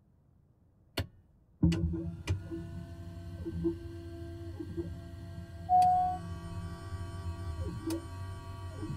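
Switches click sharply a few times.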